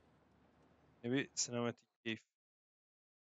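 A young man speaks briefly and loudly into a close microphone.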